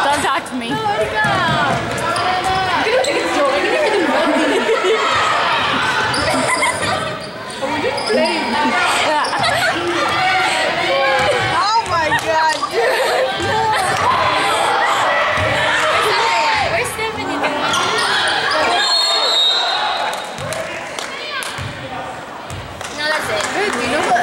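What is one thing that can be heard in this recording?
Players and spectators shout and call out in a large echoing gym.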